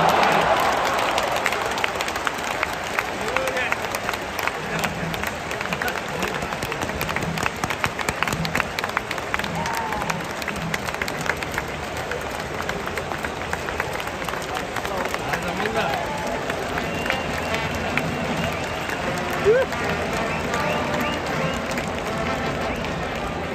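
A large stadium crowd cheers and claps loudly outdoors.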